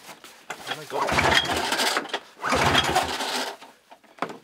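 A starter cord is yanked with a rasping whir.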